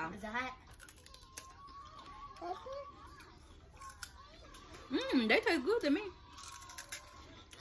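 A woman crunches on crisp snacks.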